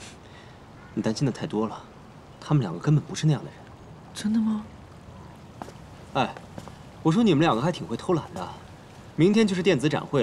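A young man answers calmly, close by.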